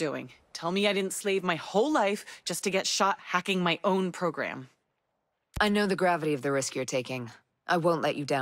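A young woman speaks calmly and close.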